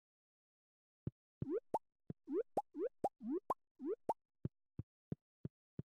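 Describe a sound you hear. Short rising pops sound in quick succession as items are picked up.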